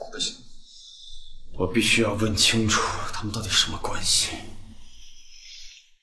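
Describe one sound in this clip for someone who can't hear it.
A young man speaks quietly and tensely.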